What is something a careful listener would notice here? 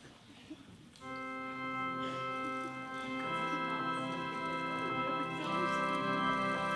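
A band with a keyboard plays music loudly.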